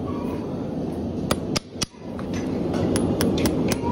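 A hammer taps metal on a horse's hoof.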